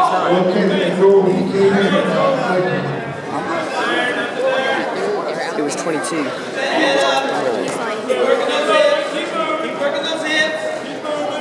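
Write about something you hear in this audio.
A crowd of spectators talks and shouts in an echoing gym.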